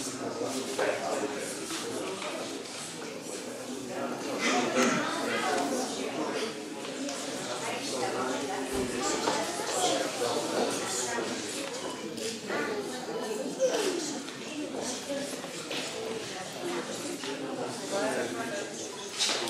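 A crowd of adults and children murmurs and chatters in an echoing hall.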